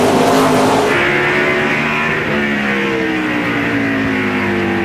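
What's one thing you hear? A race car engine drones steadily, heard from inside the car.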